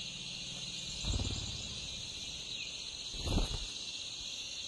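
A bird's wings flap close by.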